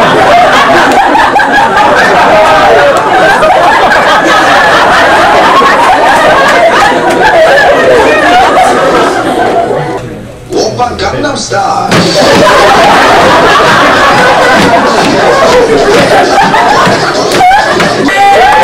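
Young women on stage laugh and shriek.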